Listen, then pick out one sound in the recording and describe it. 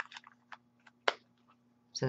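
A plastic cover snaps into place.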